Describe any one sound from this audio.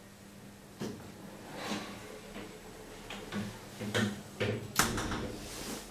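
A heavy door swings shut with a thud.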